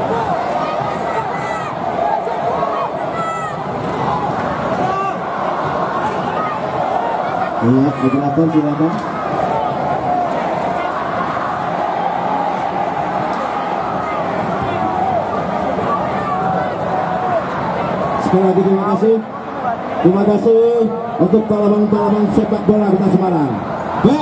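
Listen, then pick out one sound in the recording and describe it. A large crowd shouts and chatters loudly outdoors.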